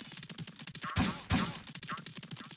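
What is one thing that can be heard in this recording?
A bright chime rings as a gem is picked up.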